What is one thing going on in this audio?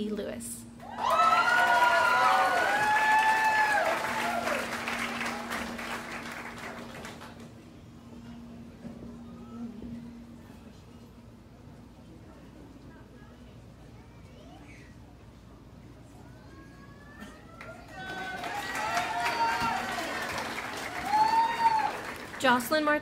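An audience cheers and whoops loudly.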